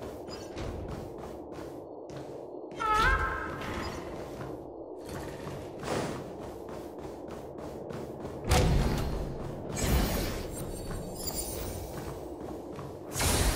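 Quick footsteps patter steadily across a floor.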